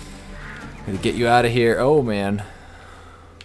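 Crows caw loudly nearby.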